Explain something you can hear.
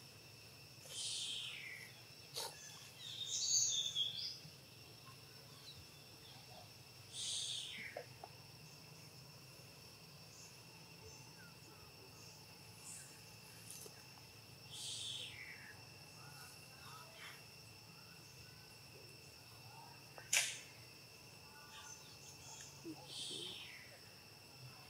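A baby monkey squeals in high, falling cries.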